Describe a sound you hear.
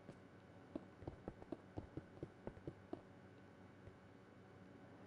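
Stone blocks are placed with soft, quick clicks.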